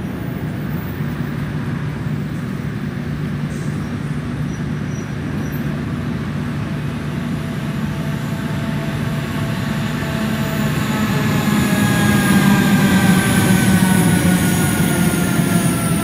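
An electric train approaches and passes close by with a rising rumble and whine.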